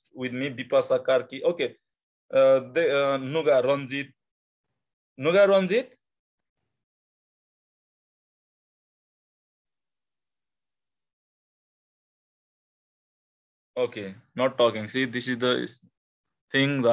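A man explains calmly, heard through an online call.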